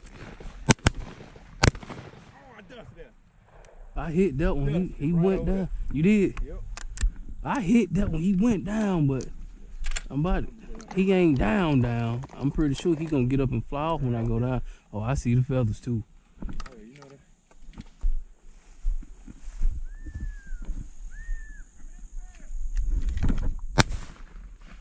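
A shotgun fires with a loud crack.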